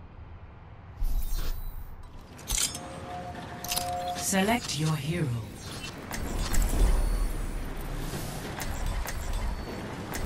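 Electronic whooshes and chimes sound as a game menu opens.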